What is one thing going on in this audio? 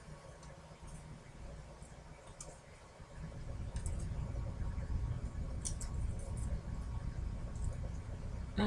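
Small tiles click softly as they are slid and set down on a table.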